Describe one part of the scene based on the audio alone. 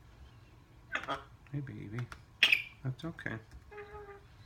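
A parrot chatters and squawks close by.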